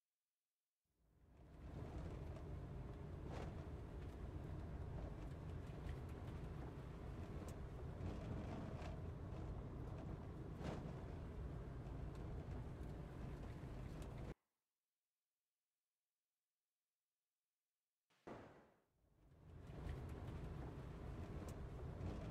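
A vehicle rumbles low and steady while driving.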